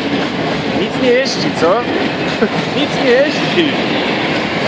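Train wheels squeal briefly on the rails.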